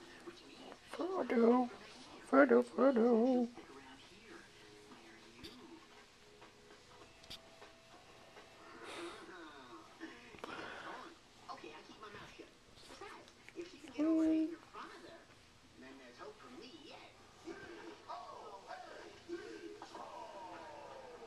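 A hand rubs and strokes a cat's fur with a soft rustle.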